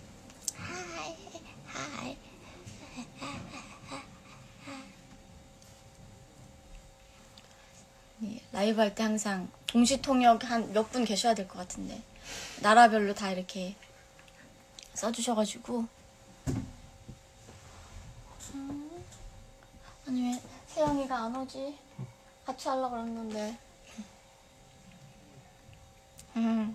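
A young woman talks calmly and cheerfully, close to a phone's microphone.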